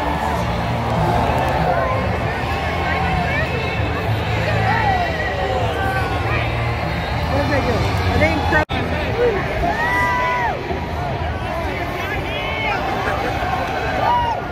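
A large outdoor crowd cheers and shouts steadily.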